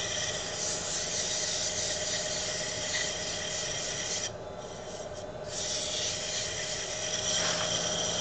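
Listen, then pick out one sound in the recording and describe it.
A wood lathe motor hums steadily.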